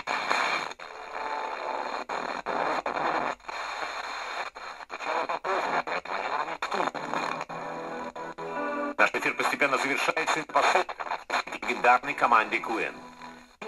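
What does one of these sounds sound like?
A small radio loudspeaker plays a crackly, fading broadcast as the station is tuned.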